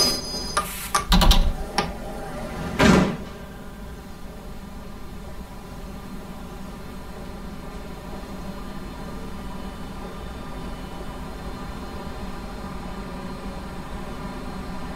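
A subway train's motor hums steadily.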